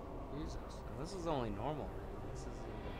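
A magic spell whooshes with a swooping tone.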